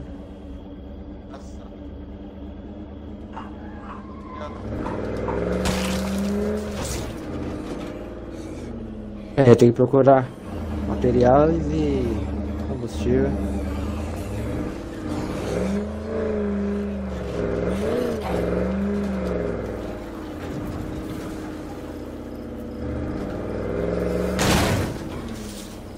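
A truck engine hums and revs up and down as it drives.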